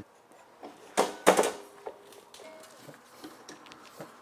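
Metal parts clack as a saw is lifted onto a stand.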